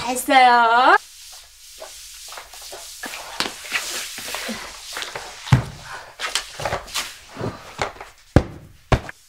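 A floor mop swishes across a wooden floor.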